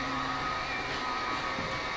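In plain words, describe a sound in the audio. Footsteps thud on a hard metal floor.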